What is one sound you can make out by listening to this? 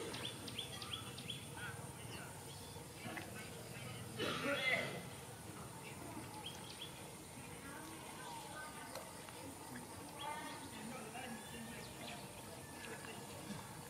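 A dog's paws scuff and patter on dry dirt as it spins around.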